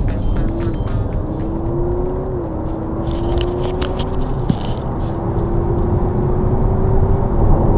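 Road noise rumbles steadily inside a moving car.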